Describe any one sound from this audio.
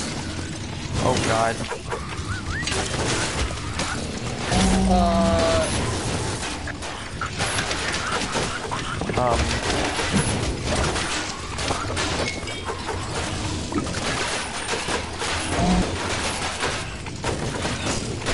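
Game monsters groan and squeal.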